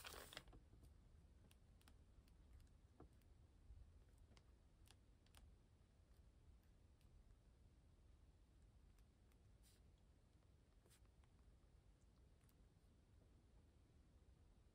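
A pen writes on paper with faint, soft scratches.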